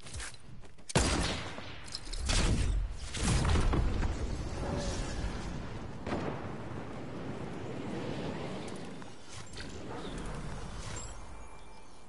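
A loud rushing whoosh of wind swells and slowly fades as a game character flies through the air.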